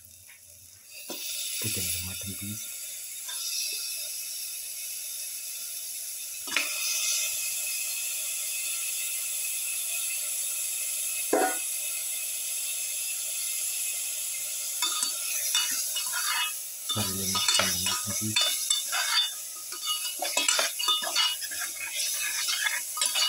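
Hot oil sizzles and crackles loudly.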